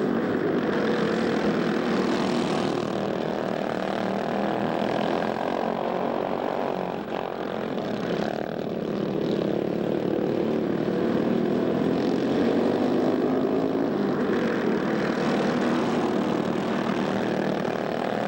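Several small kart engines buzz and whine loudly as they race past.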